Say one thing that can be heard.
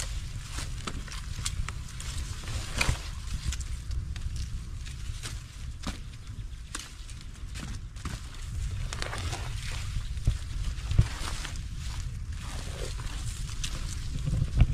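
A sack rustles as it is dragged.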